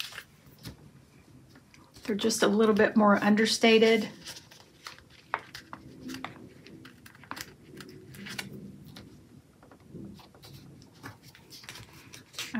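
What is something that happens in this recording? Paper rustles and crinkles as stickers are peeled and pressed down.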